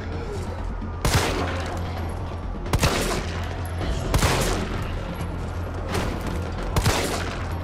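A handgun fires loud single shots that echo.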